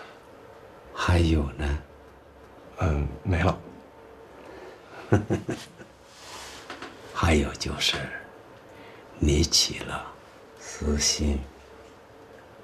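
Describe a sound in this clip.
An older man speaks in a low, rough voice, close by.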